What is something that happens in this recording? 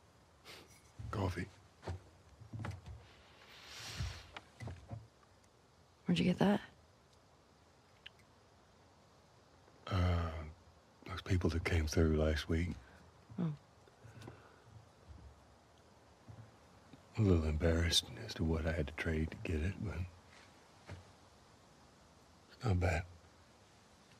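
A man speaks slowly in a low, gravelly voice.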